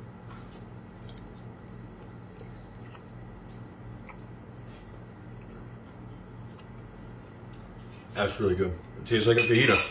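A spoon clinks lightly against a bowl.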